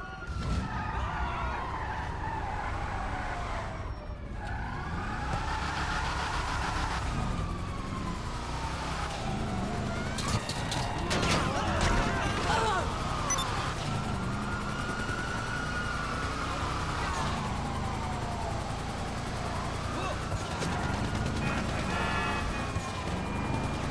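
A car engine revs up and down as the car speeds along.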